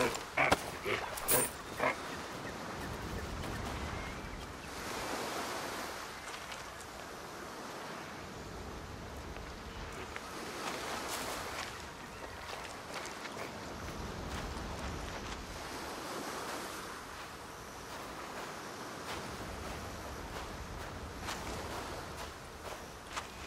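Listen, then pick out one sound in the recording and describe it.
Footsteps thud on hard ground and sand.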